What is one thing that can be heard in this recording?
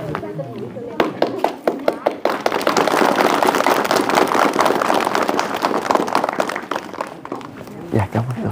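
A crowd applauds with steady clapping.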